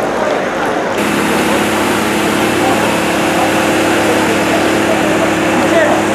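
A fire hose sprays water with a steady rushing hiss.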